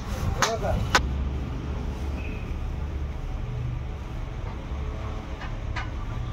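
A hand slaps and smooths soft clay.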